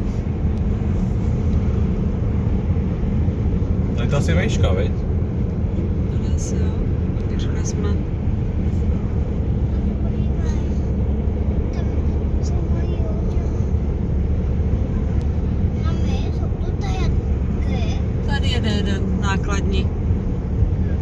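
A car engine hums and tyres roar steadily on the road, heard from inside the car.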